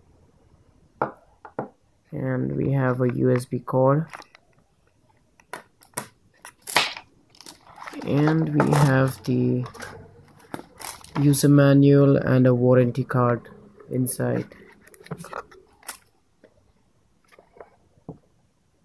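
Paper and a cardboard box rustle and tap as they are handled.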